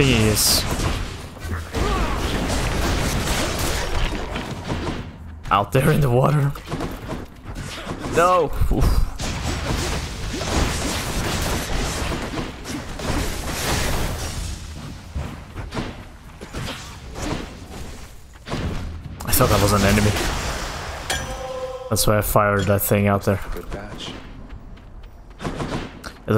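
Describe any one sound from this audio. Game combat sounds of slashing, blasts and impacts ring out in rapid bursts.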